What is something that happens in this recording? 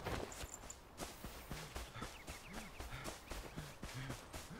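Footsteps thud quickly over grass.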